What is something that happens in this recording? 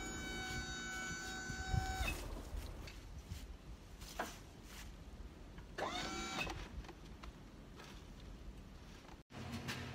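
A metal hive lifter clanks.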